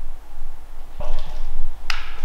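A clapperboard snaps shut.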